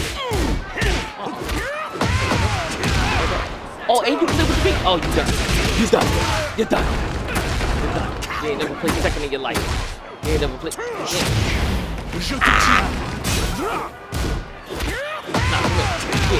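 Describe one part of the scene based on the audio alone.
A glowing weapon swishes and crackles through the air.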